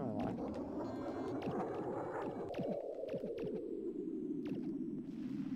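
A spaceship engine roars steadily with a slowly falling pitch.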